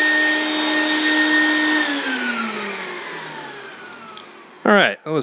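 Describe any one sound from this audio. A vacuum motor winds down and fades.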